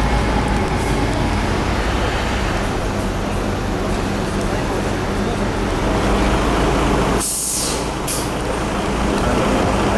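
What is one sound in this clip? A bus engine rumbles steadily as the bus pulls away and drives past.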